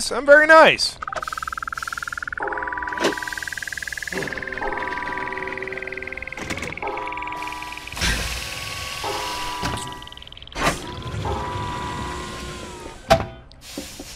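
A heavy mechanism whirs with a slowly rising whine.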